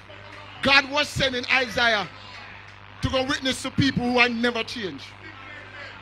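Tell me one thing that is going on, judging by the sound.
An elderly man speaks with feeling through a microphone.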